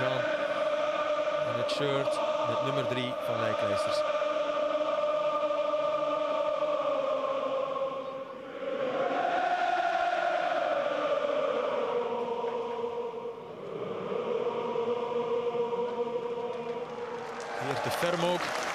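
A large stadium crowd sings together loudly and steadily.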